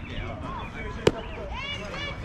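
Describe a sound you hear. A ball smacks into a leather glove.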